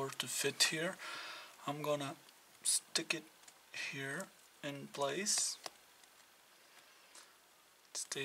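A small plastic tip clicks onto a soldering iron.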